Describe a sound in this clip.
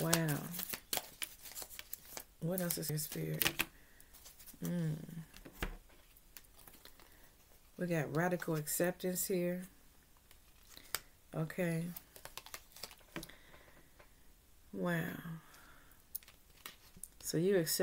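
A woman speaks calmly and closely, in short phrases.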